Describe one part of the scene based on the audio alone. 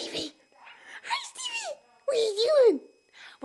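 A baby squeals and babbles close by.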